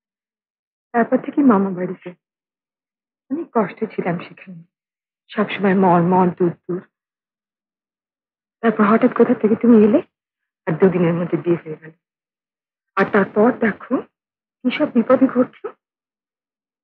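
A woman speaks with emotion close by.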